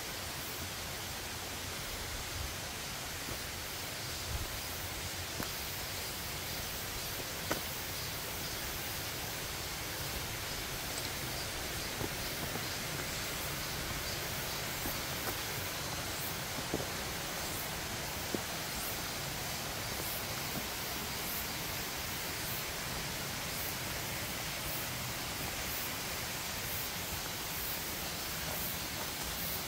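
Footsteps crunch on leaves and twigs in undergrowth.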